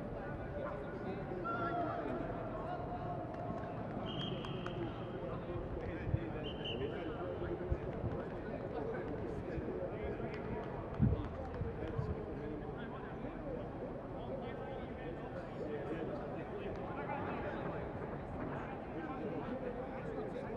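Young men and women call out to each other across a large, echoing stadium.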